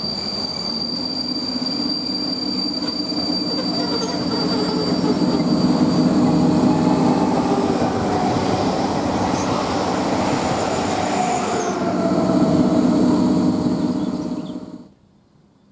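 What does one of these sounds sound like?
An electric train approaches and rumbles past close by.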